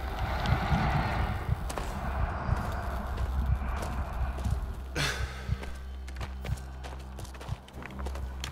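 Footsteps crunch on loose gravel and debris.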